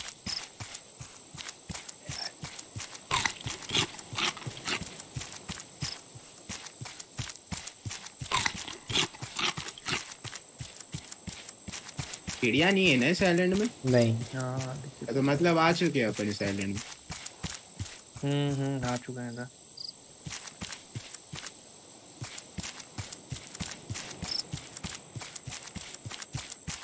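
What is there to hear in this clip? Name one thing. Footsteps patter steadily on sand.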